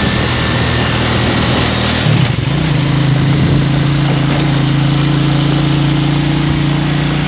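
A motorcycle engine drones steadily and shifts pitch once.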